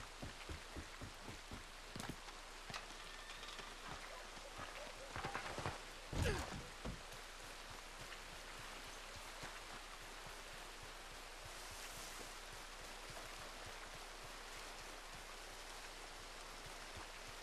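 Footsteps thud on a wooden roof and on grass.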